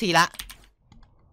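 A young man speaks loudly and briefly into a microphone.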